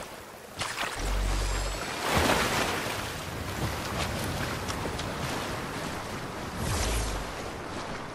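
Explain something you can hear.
Water splashes as someone swims through it.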